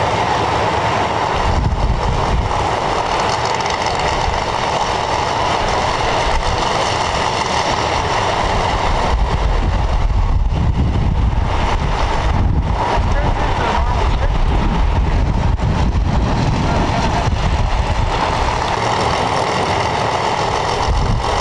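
A race car engine idles with a loud, rough rumble close by.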